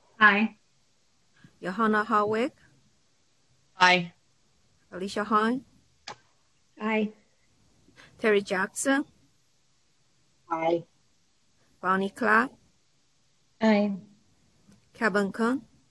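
Several women take turns saying short words over an online call, with pauses between them.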